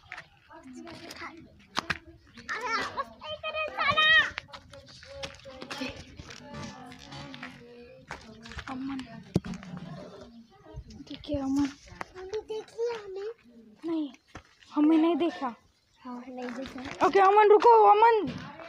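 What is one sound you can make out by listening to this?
A boy talks with animation close to the microphone.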